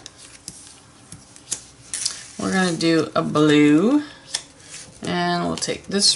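Playing cards slide and tap on a tabletop.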